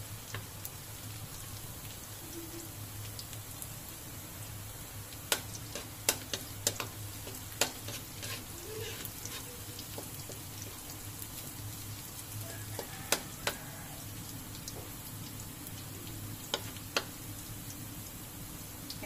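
Food sizzles quietly in a hot wok.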